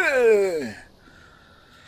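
A young man lets out a loud, falling groan close to a microphone.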